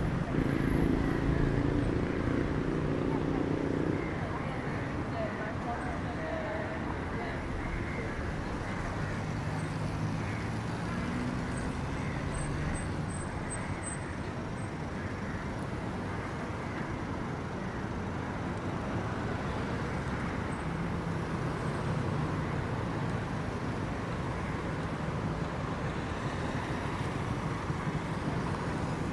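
Car engines hum and tyres roll along a street outdoors.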